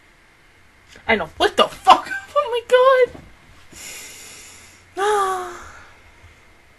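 A young woman laughs and squeals excitedly, close to a microphone.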